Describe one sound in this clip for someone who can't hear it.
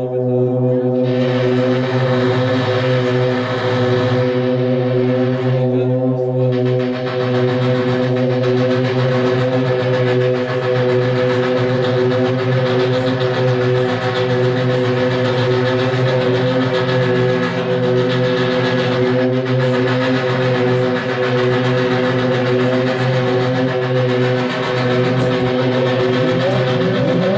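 A loud distorted electric guitar plays on a stage.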